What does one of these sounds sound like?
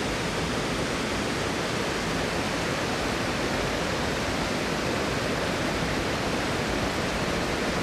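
Water trickles and burbles over stones close by.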